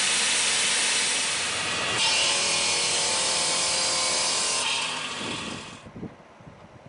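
A power saw grinds loudly through stone.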